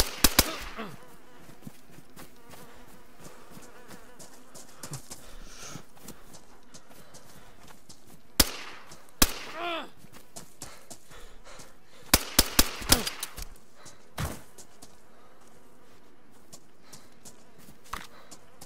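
A pistol fires several shots.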